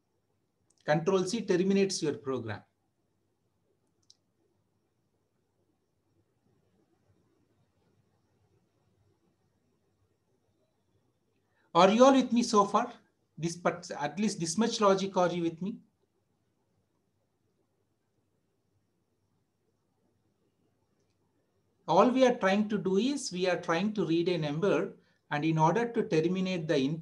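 A man speaks calmly in short phrases through a microphone, close up.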